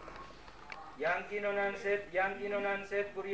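A man speaks into a radio microphone close by.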